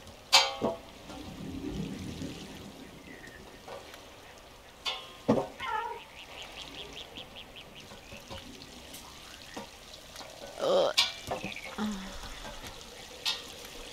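A small animal's feet patter along a metal pipe.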